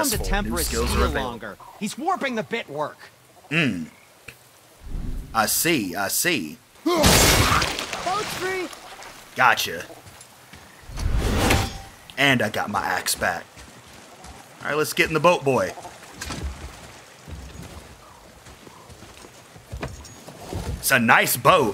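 A man talks with animation close to a microphone, now and then exclaiming loudly.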